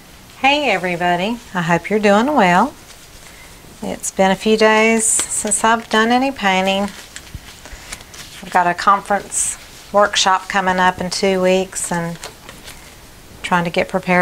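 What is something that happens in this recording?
A rubber glove squeaks and stretches as it is pulled onto a hand.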